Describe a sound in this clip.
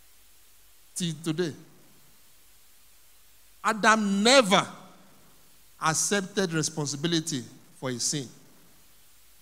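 A man preaches with animation into a microphone, in bursts separated by pauses.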